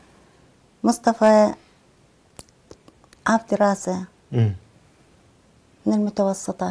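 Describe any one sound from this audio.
A middle-aged woman speaks calmly and close to a microphone, in short phrases with pauses.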